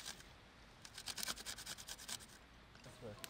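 A metal grater scrapes rapidly.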